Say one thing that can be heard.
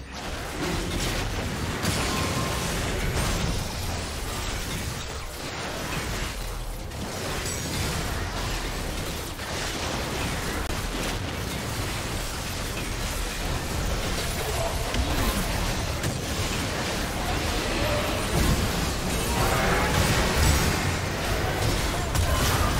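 Game combat effects crackle, whoosh and boom throughout.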